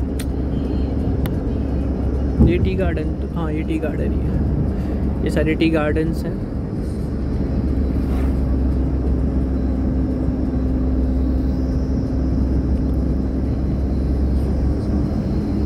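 A car rumbles steadily along a road.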